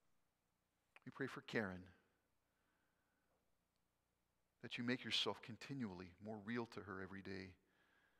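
An older man reads aloud calmly through a microphone in a large room.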